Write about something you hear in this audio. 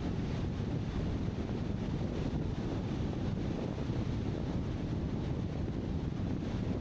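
Tyres hum steadily on the road.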